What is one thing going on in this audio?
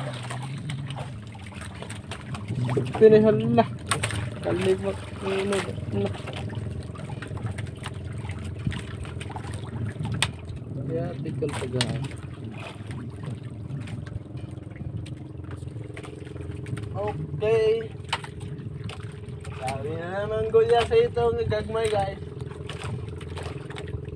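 A boat engine hums steadily throughout.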